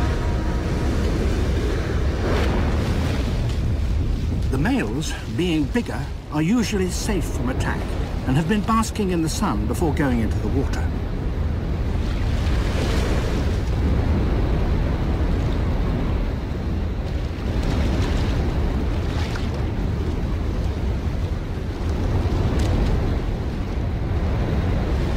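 Heavy surf crashes and roars against rocks.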